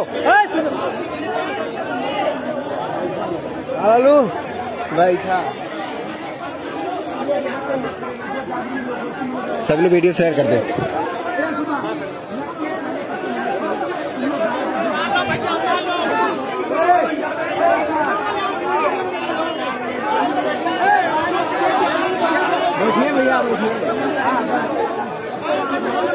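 A large crowd of men and women chatters and shouts outdoors.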